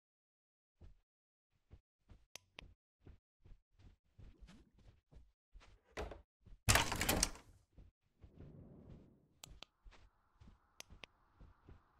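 Footsteps thud steadily across a floor.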